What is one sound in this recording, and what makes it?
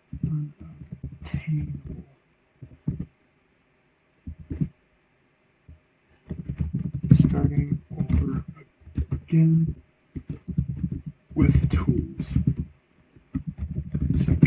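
Keys clatter on a keyboard.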